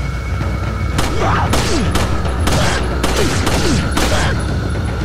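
A handgun fires several sharp shots.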